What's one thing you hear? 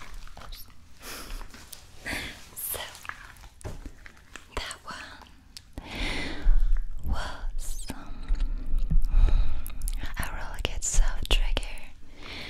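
A young woman whispers softly, close to a microphone.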